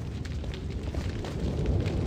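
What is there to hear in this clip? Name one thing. Fires crackle nearby.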